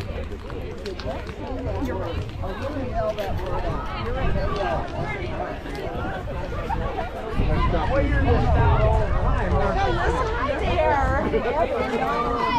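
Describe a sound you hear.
A crowd of young players chatters and calls out across an open field.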